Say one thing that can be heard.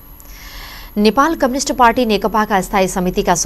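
A young woman speaks clearly and steadily into a microphone.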